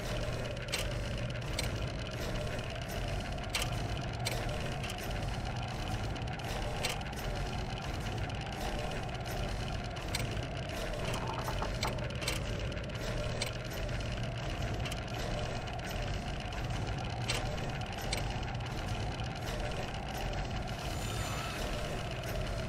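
Metal gears click into place.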